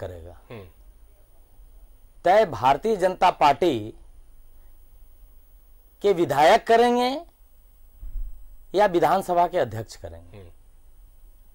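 A man speaks forcefully into a microphone in short bursts.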